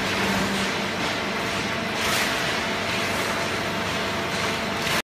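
Industrial machinery rumbles and whirs steadily in a large echoing hall.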